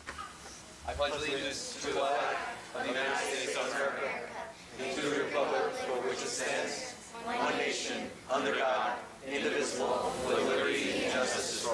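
A crowd of men and women recites together in unison.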